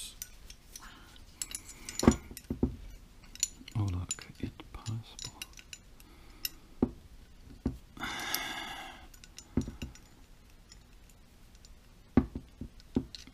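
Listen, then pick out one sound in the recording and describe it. Metal parts click and clack as they are handled.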